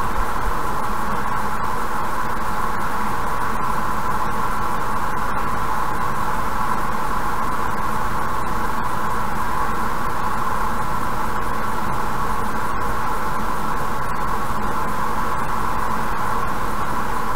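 Tyres hum steadily on a highway as a car drives along.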